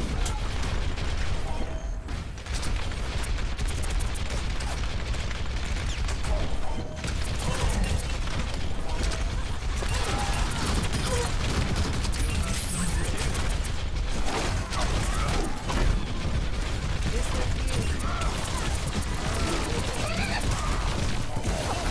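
Twin video game guns fire in rapid automatic bursts.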